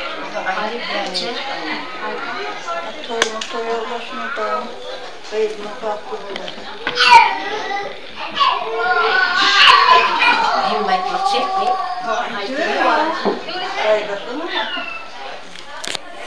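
Several women talk together nearby.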